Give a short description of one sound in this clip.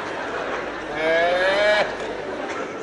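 A man calls out in a long, drawn-out voice.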